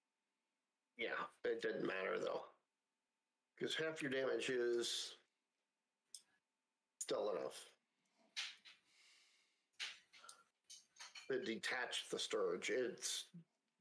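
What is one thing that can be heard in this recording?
A middle-aged man talks casually into a headset microphone, in short bursts with pauses.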